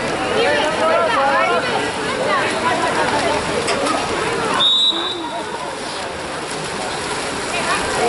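Players and spectators shout and cheer outdoors.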